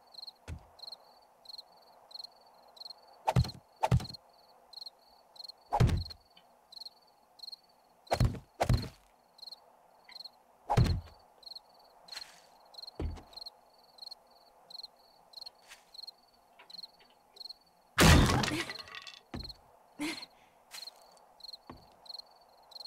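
Wooden blocks thud heavily into place.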